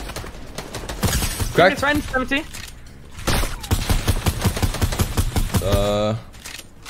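Rapid gunfire cracks in quick bursts.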